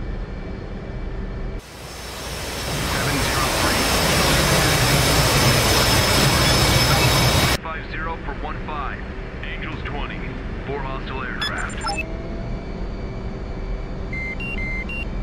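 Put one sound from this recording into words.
A jet engine hums low and steadily from inside a cockpit.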